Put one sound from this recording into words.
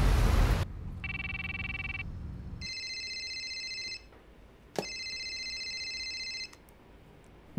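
A phone rings in steady beeping tones.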